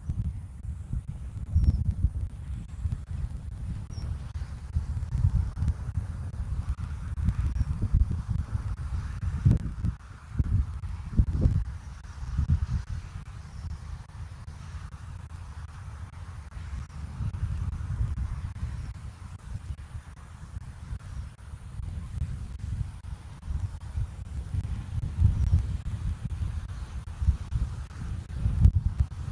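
Wind rumbles and buffets against a microphone outdoors.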